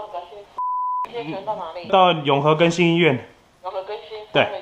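A man speaks calmly into a phone.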